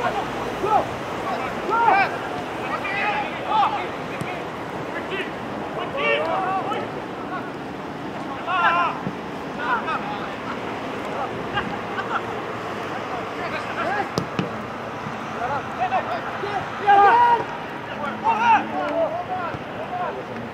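Football players shout to each other across an open pitch outdoors.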